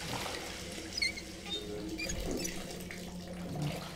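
Water runs from a bath tap into a tub.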